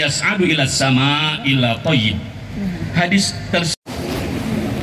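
A man chants through a loudspeaker, echoing outdoors.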